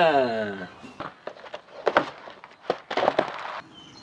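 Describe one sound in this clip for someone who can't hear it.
Plastic trays knock on a wooden table.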